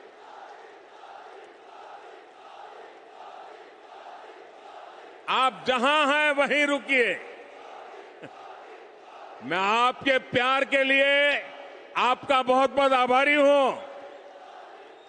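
A large crowd murmurs steadily in the background.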